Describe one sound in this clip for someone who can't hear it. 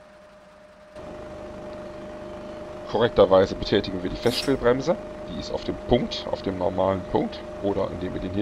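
A bus engine rumbles louder and closer.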